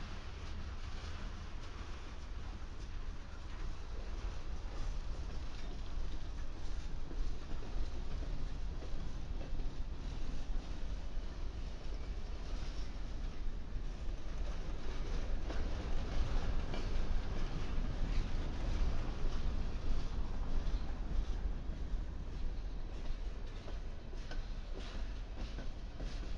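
Steel wheels clack and squeal on the rails.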